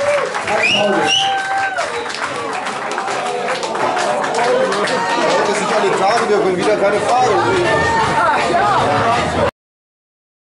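A crowd chatters and cheers in a loud, echoing room.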